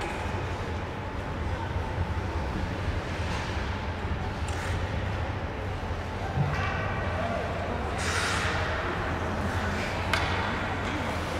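Ice skates scrape across a rink in a large echoing hall.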